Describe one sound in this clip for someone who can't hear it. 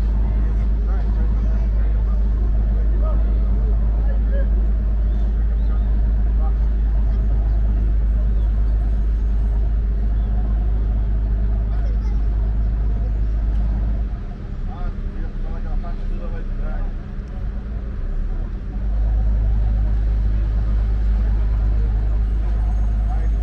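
A boat engine chugs steadily nearby.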